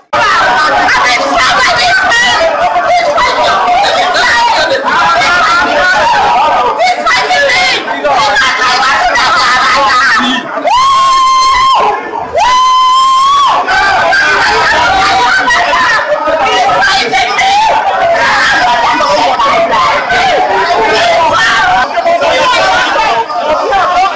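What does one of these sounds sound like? A large crowd chants and sings loudly.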